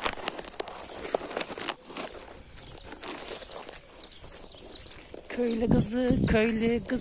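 Sandals slap on paving stones.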